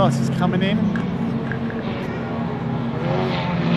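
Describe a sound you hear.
Racing car engines drone from a distance outdoors.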